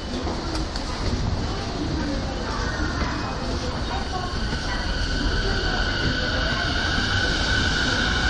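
An escalator hums and rattles.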